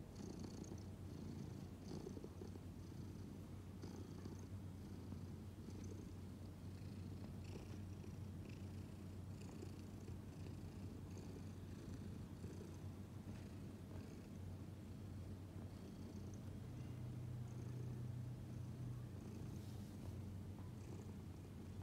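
A cat purrs steadily and close by.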